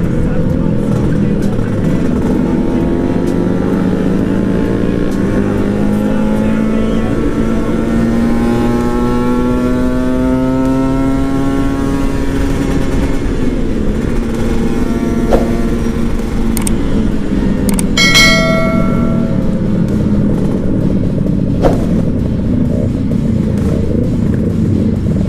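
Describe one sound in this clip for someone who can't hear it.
A motorcycle engine drones steadily close by, its pitch slowly rising and then settling.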